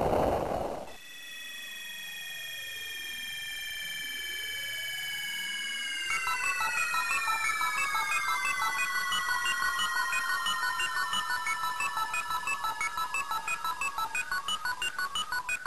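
Chiptune video game music plays.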